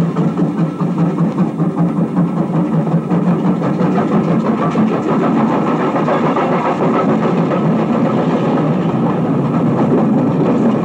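A large crowd cheers and roars, swelling louder.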